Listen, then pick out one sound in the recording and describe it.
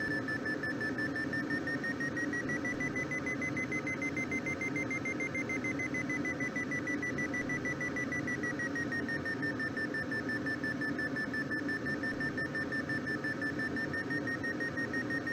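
Wind rushes steadily past a glider's cockpit.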